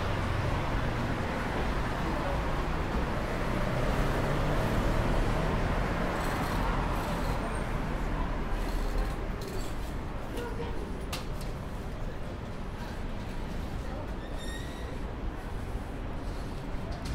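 Distant city traffic hums steadily outdoors.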